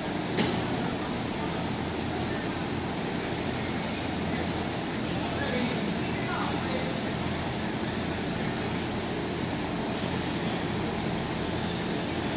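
A steady hum fills a large echoing hall.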